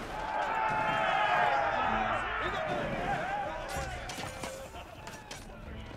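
Weapons clash in a battle.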